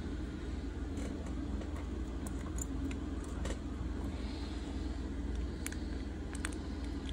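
Small plastic clicks and taps sound as a phone is handled.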